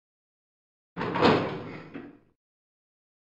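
A heavy metal gate creaks open.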